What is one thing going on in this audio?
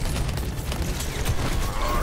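A game weapon fires rapid shots.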